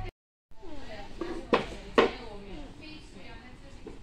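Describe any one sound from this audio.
A plastic chair knocks and scrapes on a floor.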